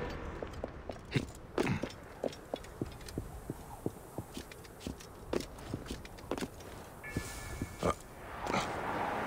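Footsteps scuff and tap on rock.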